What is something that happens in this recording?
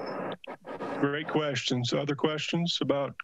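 A second man speaks clearly into a close microphone over an online call.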